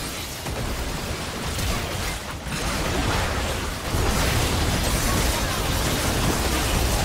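Game spell effects crackle and burst in a fight.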